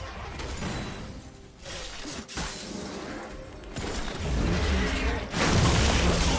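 Video game spells whoosh and crackle during a battle.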